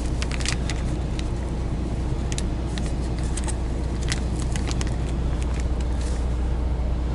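Small objects click and clink as they are handled.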